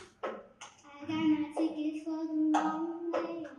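A young girl speaks into a microphone in a large hall.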